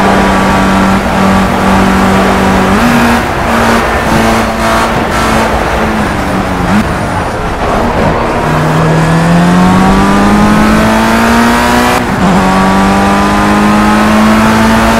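A racing car engine whines loudly at high revs.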